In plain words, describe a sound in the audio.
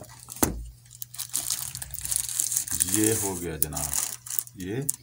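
Packaging rustles and crinkles as a box is opened.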